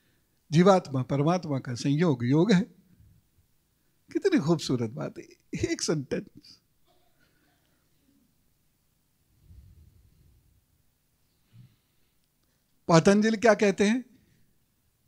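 A middle-aged man speaks calmly into a microphone, in short bursts with pauses.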